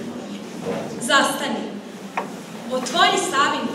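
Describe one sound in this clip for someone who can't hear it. A girl speaks into a microphone, heard over loudspeakers.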